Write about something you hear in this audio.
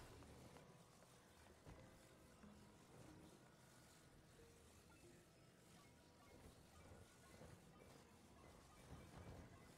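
Molten lava bubbles and rumbles low.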